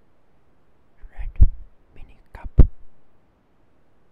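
Sharp knocks and taps sound close to a microphone.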